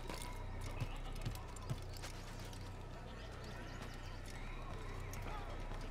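Footsteps knock on wooden boards.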